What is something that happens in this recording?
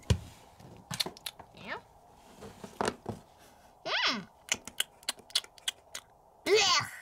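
Small plastic toys tap and click against a wooden floor.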